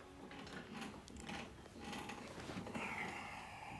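A woman sighs and moans softly up close.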